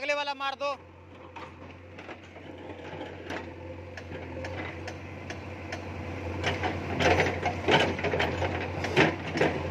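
A backhoe bucket scrapes and knocks against rubble and dirt.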